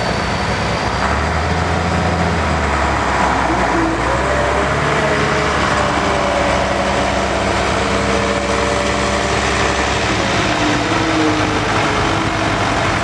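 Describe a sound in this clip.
A tractor engine revs up and down.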